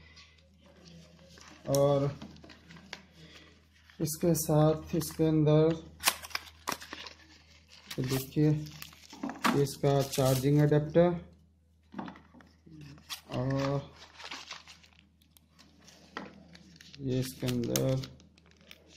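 Paper and plastic packaging rustle and crinkle in someone's hands, close by.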